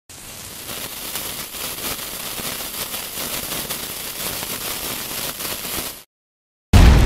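A burning fuse fizzes and crackles steadily.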